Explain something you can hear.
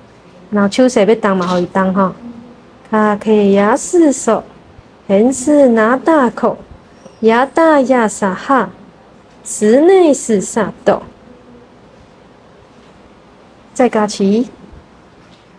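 A woman speaks calmly and clearly, close by, in short phrases.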